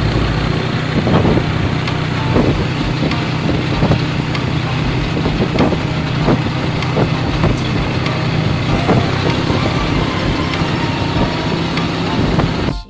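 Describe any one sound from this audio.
A vehicle's frame rattles and knocks over a bumpy road.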